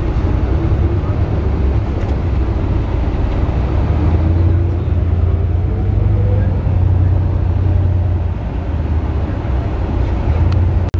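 A bus engine rumbles low and steady from inside the bus.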